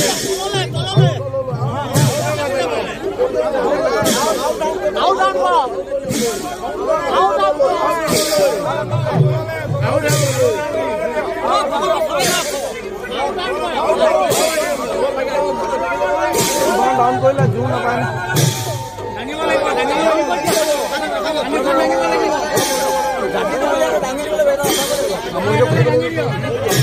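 A large crowd of men and women sing and chant together loudly and close by.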